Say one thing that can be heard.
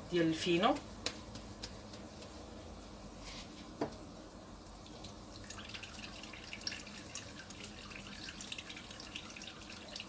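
Hands knead and pat soft dough on a countertop.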